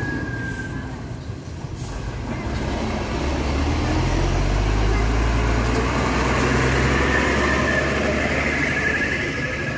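A heavy truck engine roars loudly as it drives slowly past close by.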